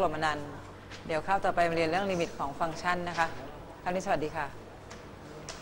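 A middle-aged woman speaks calmly to a room, close by.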